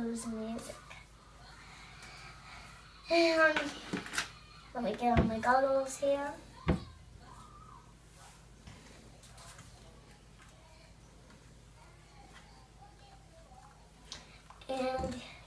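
A young girl talks in short, lively bursts close by.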